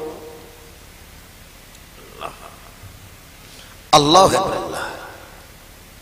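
A man chants melodically into a microphone, heard through loudspeakers with echo.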